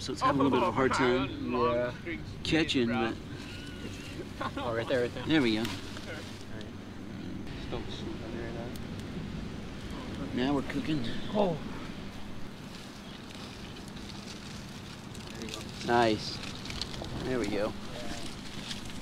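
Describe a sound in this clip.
Young men talk with each other close by.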